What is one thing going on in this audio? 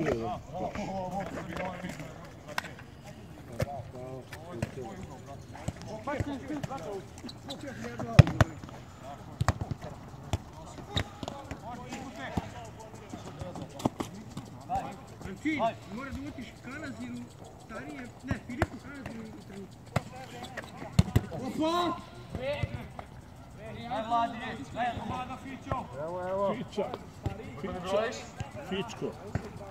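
A handball thuds as it bounces and is thrown on a hard court.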